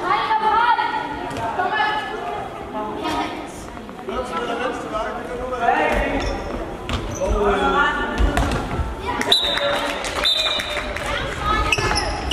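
Children shout and call out to each other in a large echoing hall.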